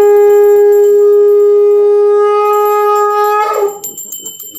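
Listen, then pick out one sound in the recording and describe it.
A conch shell is blown in one long, steady, loud note that breaks off.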